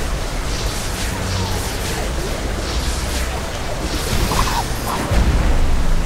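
Soft magical whooshes sound as a small glowing spirit darts about.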